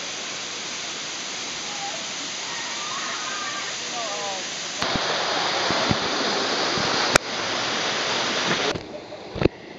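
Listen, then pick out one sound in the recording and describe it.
A waterfall roars and splashes steadily close by.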